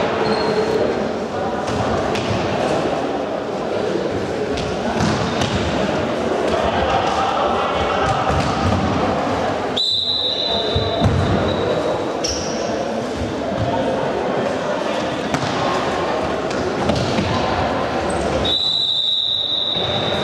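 Shoes squeak on a hard indoor floor.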